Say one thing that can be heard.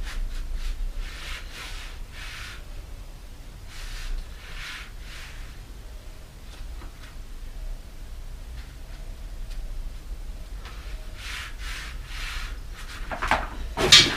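A bicycle tyre rustles and squeaks as it is handled.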